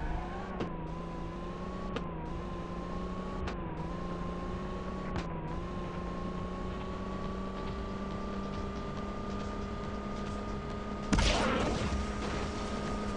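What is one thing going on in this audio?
A car engine revs steadily higher as it speeds up, with brief gear shifts.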